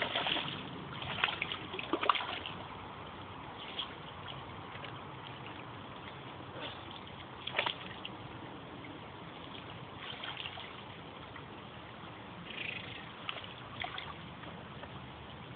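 A shallow creek trickles softly outdoors.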